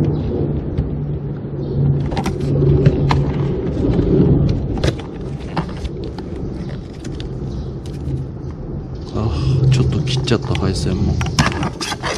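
Pliers click and scrape against hard plastic parts.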